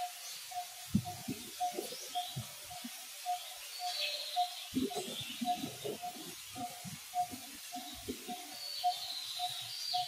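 A monkey rustles through leaves and grass.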